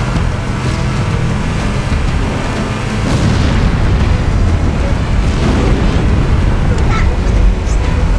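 A vehicle engine rumbles steadily.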